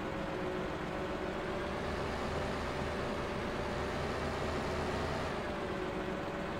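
A hydraulic arm whines as it swings and rises in pitch.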